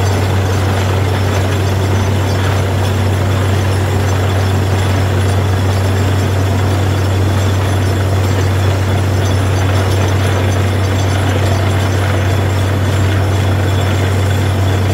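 A diesel engine of a drilling rig drones loudly and steadily.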